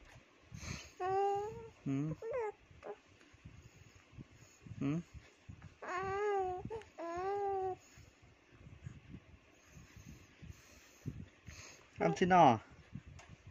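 A young baby coos and babbles.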